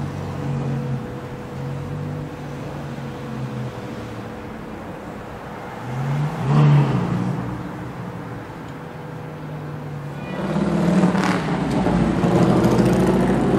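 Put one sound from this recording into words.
City traffic hums steadily along the street.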